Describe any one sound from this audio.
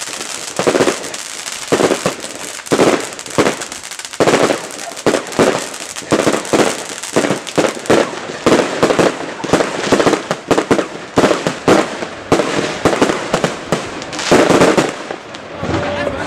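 Fireworks bang and crackle nearby outdoors.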